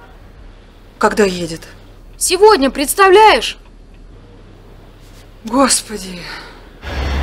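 A woman speaks anxiously into a phone, close by.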